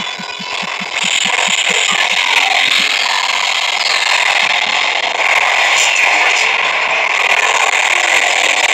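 An energy blast roars loudly.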